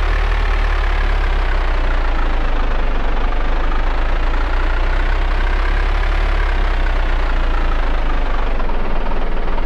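A car engine hums and rises and falls in pitch as the car drives.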